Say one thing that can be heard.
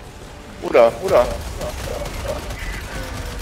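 Heavy gunfire rattles.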